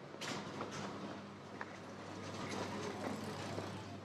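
A bicycle rolls past over cobblestones.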